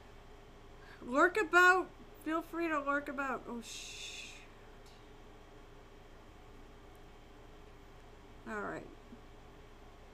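A young woman speaks casually into a nearby microphone.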